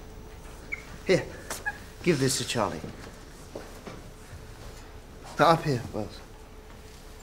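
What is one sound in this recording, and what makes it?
An elderly man speaks calmly and closely.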